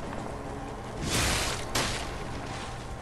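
A heavy whoosh and thud strike twice in quick succession.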